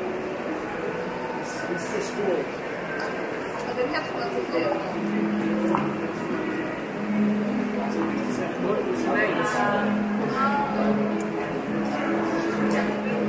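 A young man asks questions nearby.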